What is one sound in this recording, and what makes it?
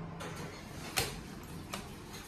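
A finger presses an elevator button with a click.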